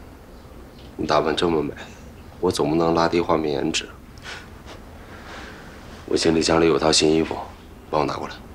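A young man speaks playfully, close by.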